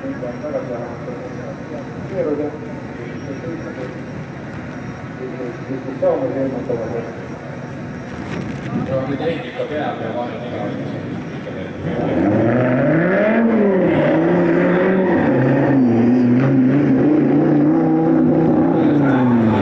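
Racing car engines rev and roar, rising and falling in pitch.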